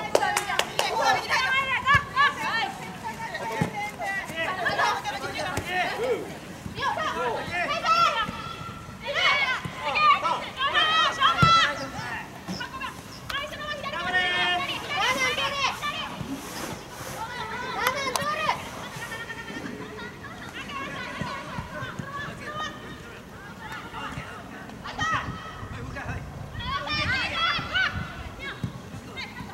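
Young women shout and call out to each other outdoors on an open field.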